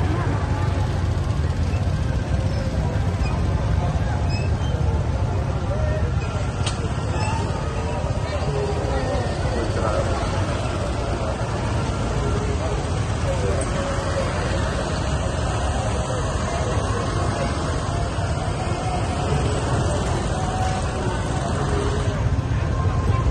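Many motorbike engines hum and putter close by.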